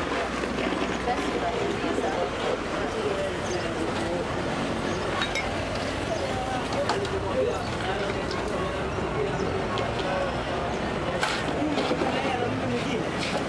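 A busy street murmurs with chatter outdoors.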